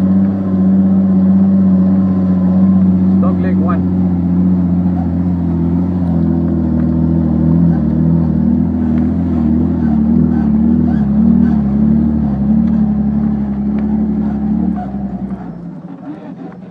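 A vehicle engine roars loudly up close, straining as it climbs.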